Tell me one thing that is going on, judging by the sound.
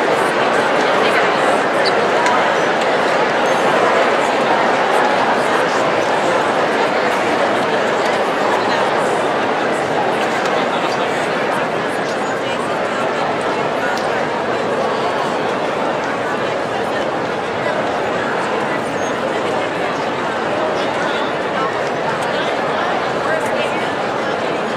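A large crowd chatters and murmurs in a large echoing arena.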